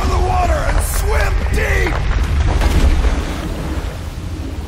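Water splashes as a swimmer dives in.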